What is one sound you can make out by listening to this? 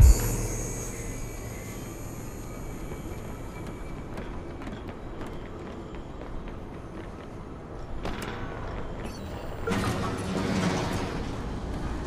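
Footsteps run quickly across concrete.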